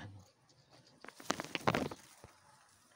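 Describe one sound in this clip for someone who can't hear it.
Leaves rustle as a hand brushes through a bush.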